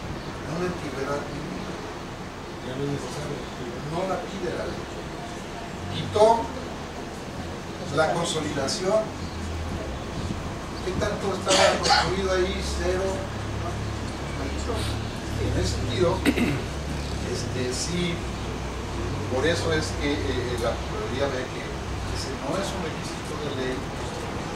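A man speaks calmly into a microphone at a distance.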